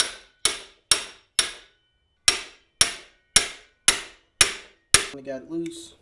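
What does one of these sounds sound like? A ratchet wrench clicks sharply as it turns, with a metallic ring.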